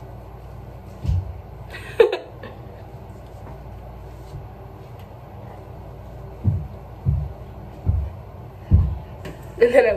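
Hands pat and tap against cheeks.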